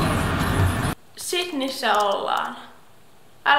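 A young woman talks close to a microphone with animation.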